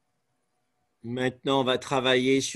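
An elderly man speaks loudly, close by.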